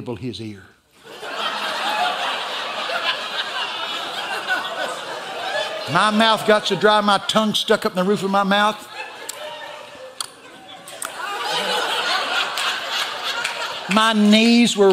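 An audience laughs together in a large hall.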